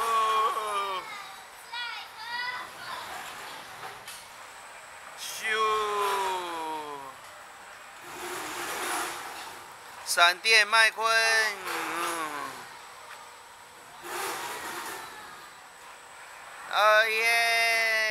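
A fairground ride swings back and forth with a rushing whoosh.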